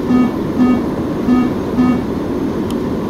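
A cockpit warning alarm beeps.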